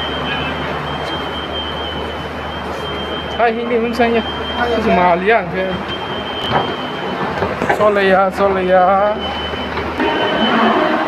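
An escalator runs with a low, steady hum.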